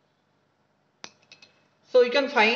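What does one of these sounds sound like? Glass clinks lightly a few times.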